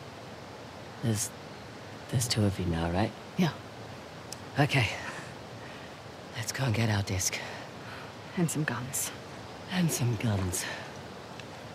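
A young woman speaks calmly and warmly.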